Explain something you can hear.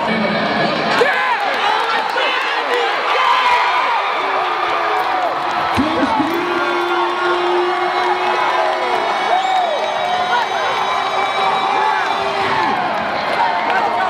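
A crowd of men and women cheers and shouts excitedly.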